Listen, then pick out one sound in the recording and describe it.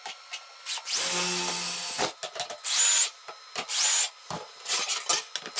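A cordless drill whirs through metal in short bursts.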